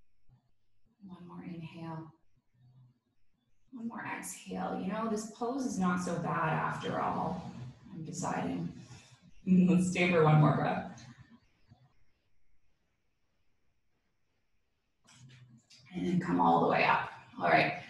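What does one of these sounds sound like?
A woman speaks calmly and softly close by, pausing between phrases.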